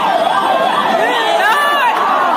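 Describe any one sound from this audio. A crowd of people shouts in alarm.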